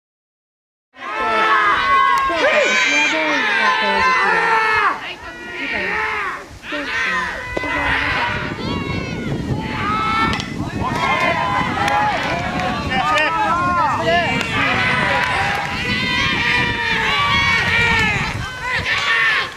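A crowd of boys chants and cheers loudly outdoors.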